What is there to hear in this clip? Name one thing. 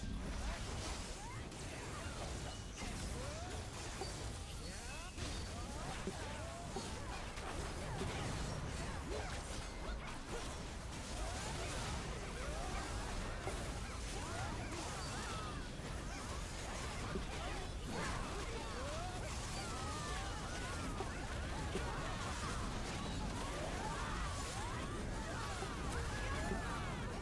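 Weapons clash and spells burst in a busy battle.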